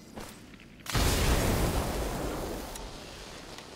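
A loud fiery blast bursts and roars.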